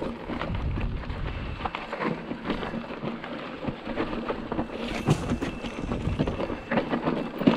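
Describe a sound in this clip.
Bicycle tyres crunch and rattle over loose rocky ground.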